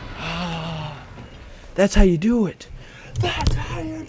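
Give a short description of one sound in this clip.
A young man shouts in fright.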